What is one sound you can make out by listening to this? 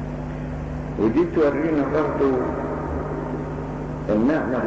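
An elderly man speaks slowly and calmly into a microphone, heard through a loudspeaker.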